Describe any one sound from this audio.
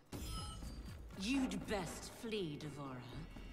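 A woman speaks in a low, threatening voice.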